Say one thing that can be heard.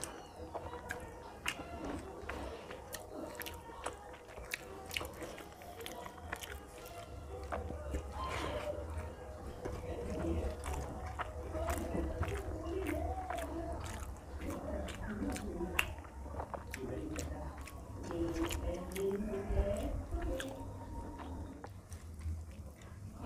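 A man chews food noisily with his mouth close by.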